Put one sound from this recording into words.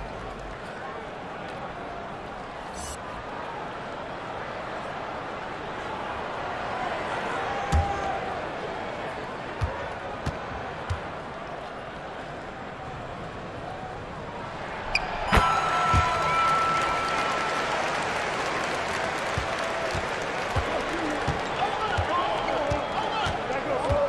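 A large arena crowd murmurs steadily.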